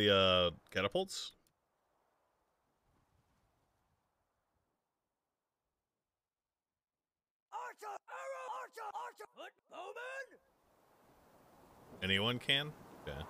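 A man talks with animation into a close microphone, in short bursts with pauses.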